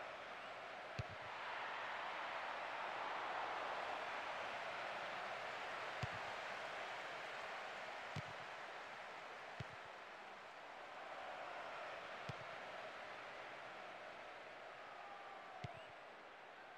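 A football is kicked with sharp thuds now and then.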